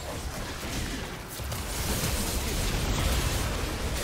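Video game spell blasts and weapon clashes crackle and boom, growing louder.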